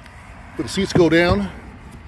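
A rubber floor mat rustles as a hand lifts it.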